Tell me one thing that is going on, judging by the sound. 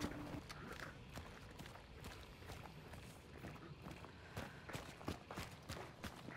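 Footsteps tread softly over rough ground.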